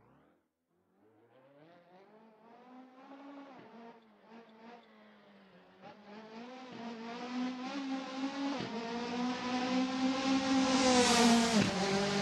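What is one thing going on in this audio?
A rally car engine roars at high revs, growing steadily louder as the car approaches and races close by.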